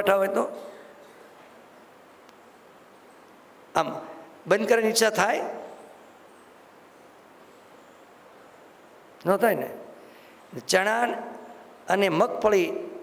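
An elderly man speaks calmly into a microphone, in short phrases with long pauses.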